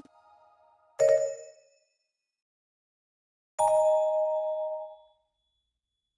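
A bright electronic chime plays twice.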